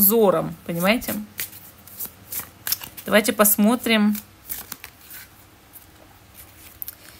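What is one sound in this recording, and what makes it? A deck of playing cards is shuffled with quick soft flicks and taps.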